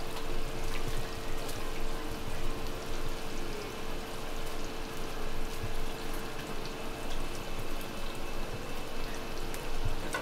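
Chopsticks tap lightly against a plate.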